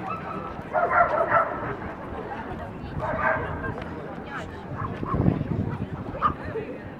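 A crowd of men and women chat in the open air.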